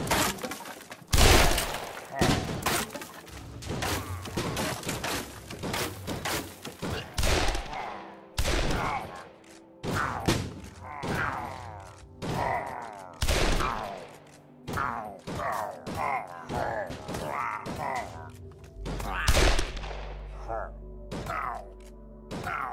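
Crossbows fire with sharp twangs, again and again.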